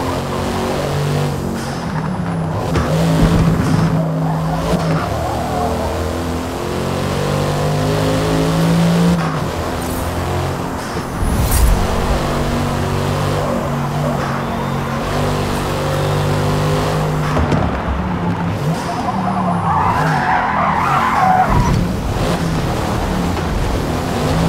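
A car engine roars loudly, rising and falling in pitch as the gears shift.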